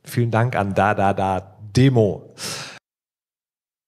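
A man speaks with animation through a loudspeaker in a large hall.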